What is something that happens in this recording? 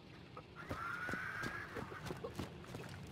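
Footsteps scuff over stone.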